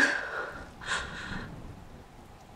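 A young woman gasps and moans weakly nearby.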